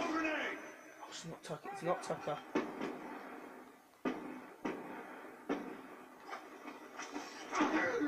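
Gunshots crack from a video game played through a television speaker.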